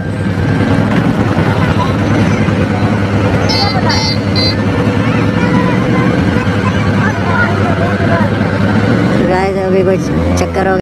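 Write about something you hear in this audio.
Motorcycle engines idle and rumble steadily close by.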